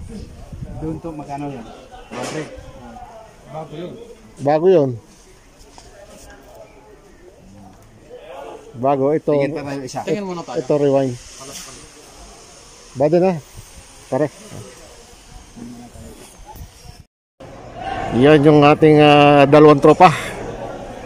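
Men talk nearby with animation.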